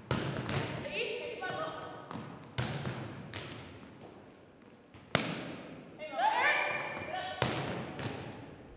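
A volleyball is struck with sharp slaps that echo around a large gym.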